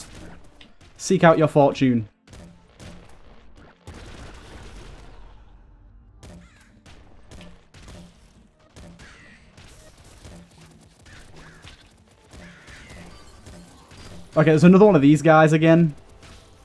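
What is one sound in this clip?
Video game gunfire pops and crackles rapidly.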